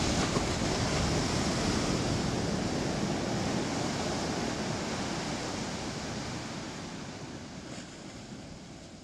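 Ocean waves break and wash up onto the shore, slowly fading.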